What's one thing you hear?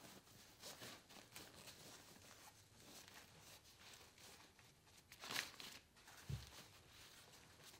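Fabric rustles softly as hands adjust a stroller.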